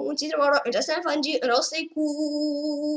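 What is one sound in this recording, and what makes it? A boy talks with animation into a nearby microphone.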